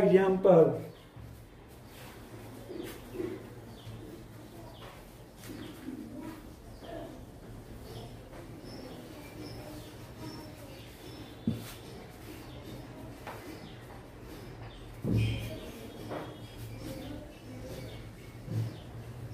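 An elderly man talks calmly, as if explaining, in a slightly echoing room.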